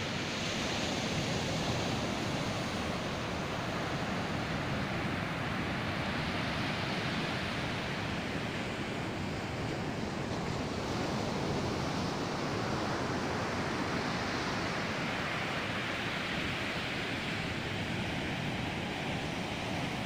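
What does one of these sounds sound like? Ocean waves crash and wash up onto a beach.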